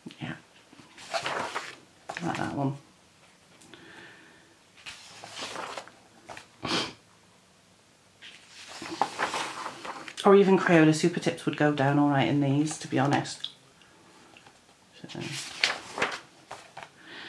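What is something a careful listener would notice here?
Paper pages of a book turn and rustle.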